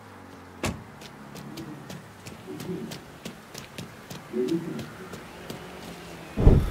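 Footsteps run on hard ground.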